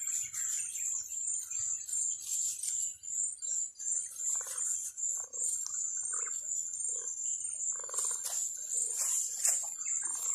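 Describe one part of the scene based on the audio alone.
Cuttings rustle as they are pressed into loose soil.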